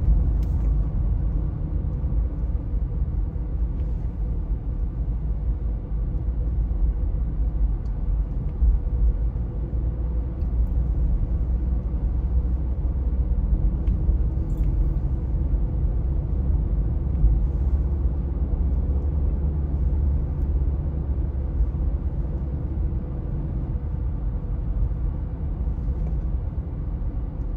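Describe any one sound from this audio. Tyres roll steadily on smooth pavement.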